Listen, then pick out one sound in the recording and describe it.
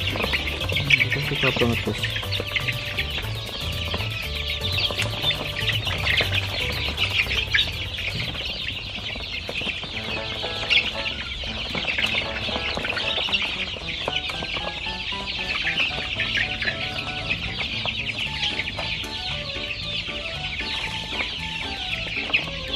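Many chicks peep and chirp constantly.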